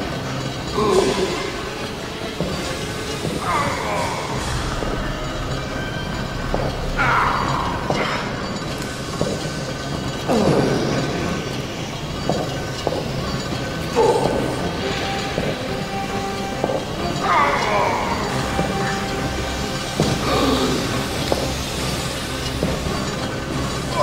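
Steam hisses steadily.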